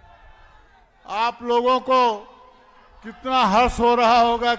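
An elderly man speaks loudly and with emphasis through a microphone and loudspeakers.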